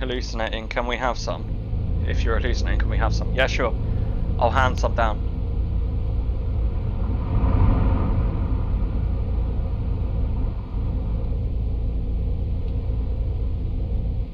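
A bus engine rumbles steadily while driving at speed.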